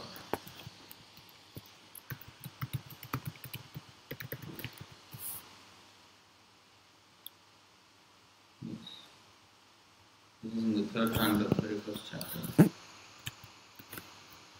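Fingers tap on a laptop keyboard.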